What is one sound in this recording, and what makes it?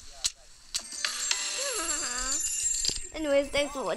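A short victory jingle plays with bright chiming tones.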